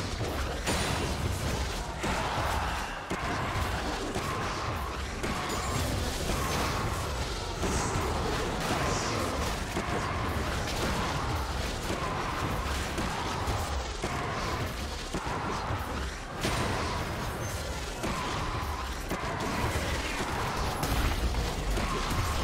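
Game spell effects and weapon hits clash and crackle.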